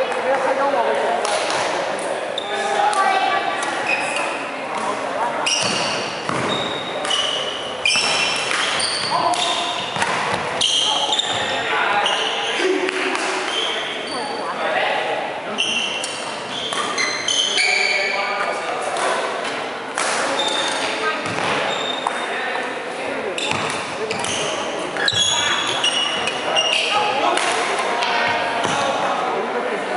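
Rackets smack a shuttlecock back and forth in a large echoing hall.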